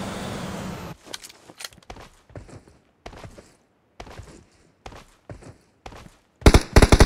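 Footsteps sound on grass in a video game.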